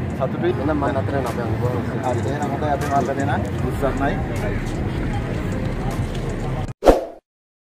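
A man speaks with animation close by, outdoors.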